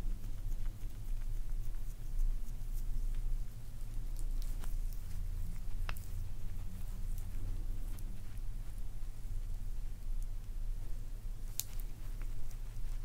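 Fingers tap and click against skin close to a microphone.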